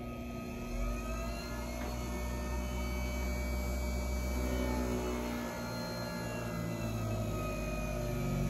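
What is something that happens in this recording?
A small motor hums steadily.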